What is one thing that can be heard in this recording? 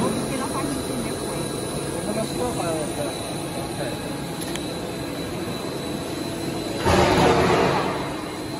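Factory machinery hums and rattles steadily.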